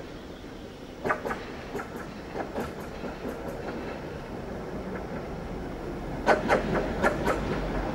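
Tram wheels clatter over rail joints.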